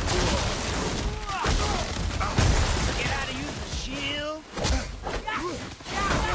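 Heavy blows thud during a fight.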